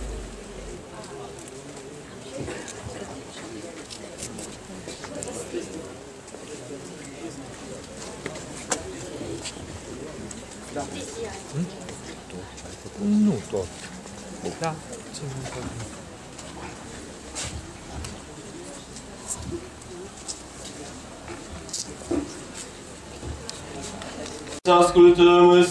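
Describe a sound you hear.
A crowd murmurs and chatters quietly nearby.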